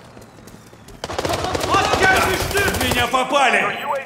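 A rifle fires rapid bursts.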